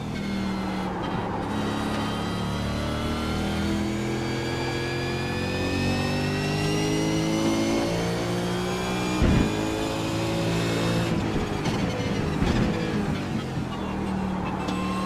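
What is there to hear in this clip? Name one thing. A racing car engine roars, rising and falling in pitch as it shifts gears.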